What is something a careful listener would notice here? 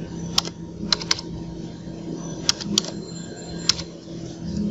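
Computer keys click sharply as someone types.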